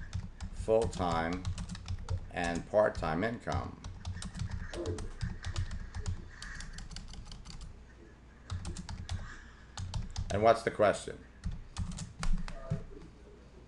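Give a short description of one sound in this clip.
A keyboard clicks with quick typing.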